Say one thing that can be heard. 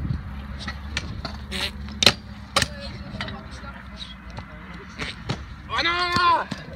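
A scooter clacks and knocks sharply against concrete.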